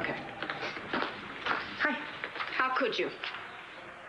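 A middle-aged woman speaks cheerfully.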